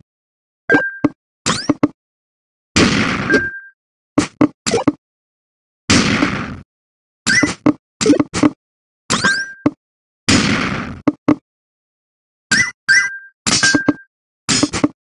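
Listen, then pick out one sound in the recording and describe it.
Game blocks land with short clicks and beeps.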